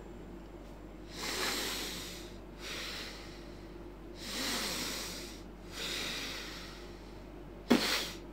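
A man blows out air in soft, breathy puffs.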